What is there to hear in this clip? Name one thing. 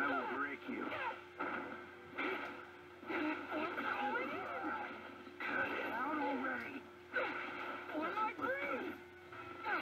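Energy blasts whoosh and crackle in bursts.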